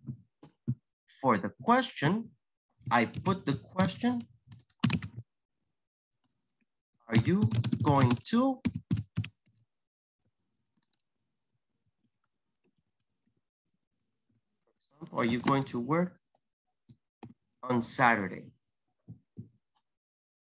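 A man speaks calmly over an online call, in bursts with pauses.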